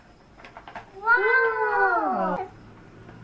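A toy computer plays a bright electronic tone.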